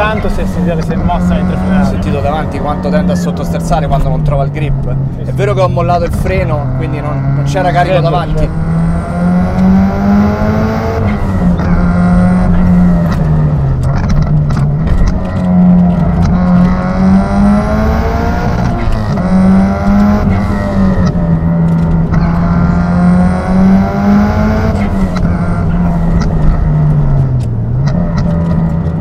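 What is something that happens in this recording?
A car engine roars and revs up and down steadily.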